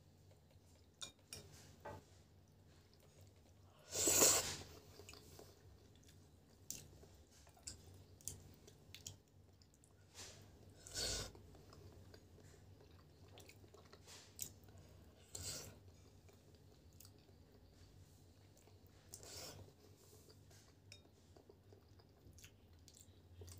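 A metal fork and spoon clink against a glass bowl.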